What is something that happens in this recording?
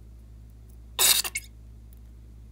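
Scissors snip through the tip of a rubber balloon.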